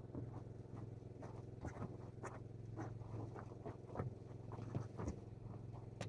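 Footsteps crunch on dry ground close by.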